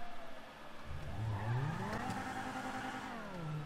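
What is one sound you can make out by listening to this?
A car engine starts and revs as the car pulls away.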